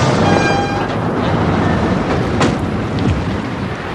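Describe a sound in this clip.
A car door shuts.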